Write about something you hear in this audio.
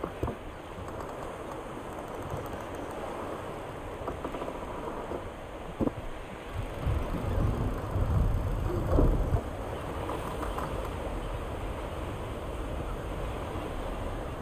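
Waves lap and splash steadily against a small raft.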